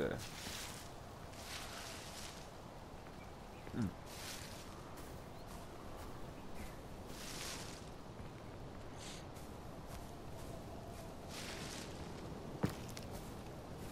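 Footsteps rustle through tall grass and leafy bushes.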